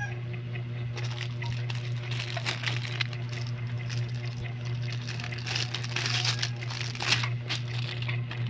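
Plastic packaging crinkles and rustles in a hand.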